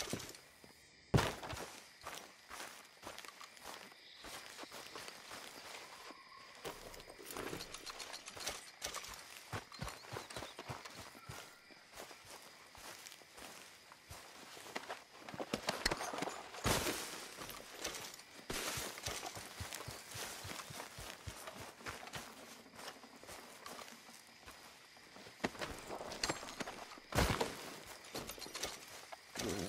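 Footsteps tread through grass and dirt outdoors.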